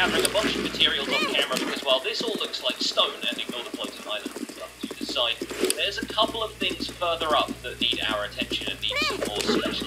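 Horse hooves gallop over grass.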